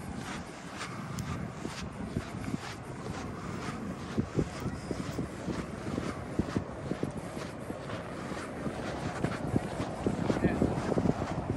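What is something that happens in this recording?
Small waves lap gently against a sandy shore.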